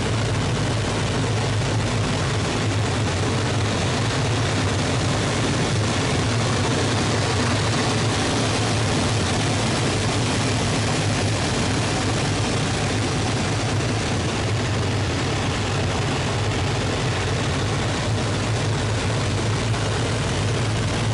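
A propeller engine drones loudly and steadily close by.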